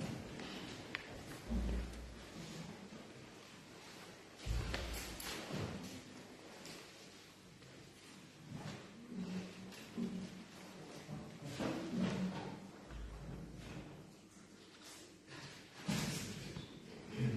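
A man reads aloud calmly through a microphone in an echoing room.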